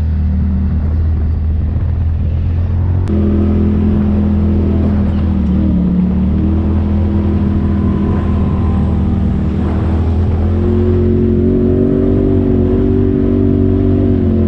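An off-road vehicle's engine drones steadily, rising and falling in pitch.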